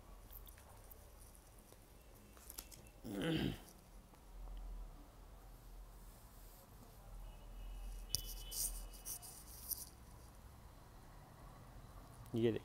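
Cloth rustles softly as it is moved and spread out.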